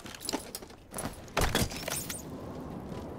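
A metal device is set down with a clunk.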